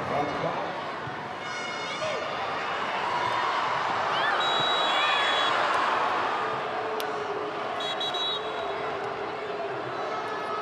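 A crowd cheers and whistles steadily in an open stadium.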